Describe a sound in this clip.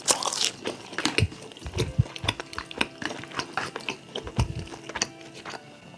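Chopsticks click against a bowl.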